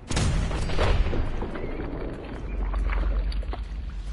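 A body bursts apart with a wet splatter.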